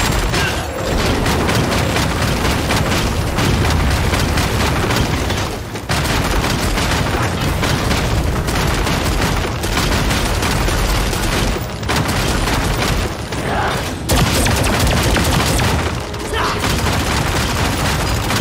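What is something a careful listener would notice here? Spell blasts and weapon impacts crash and boom in quick succession.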